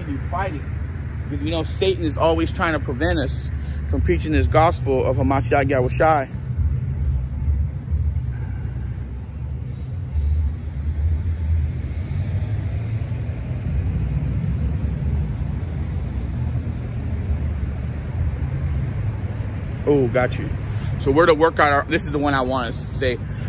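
A low rumble of wind buffets outdoors.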